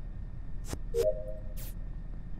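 A short electronic chime rings as a task is completed.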